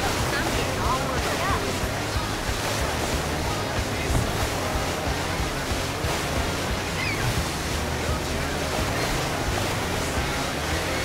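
Water splashes and sprays against a jet ski.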